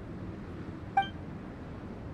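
A short, bright chime rings once.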